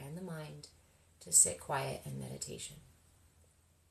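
A young woman speaks softly and calmly, close by.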